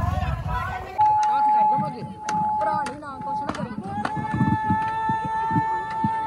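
A crowd of people chatters and calls out.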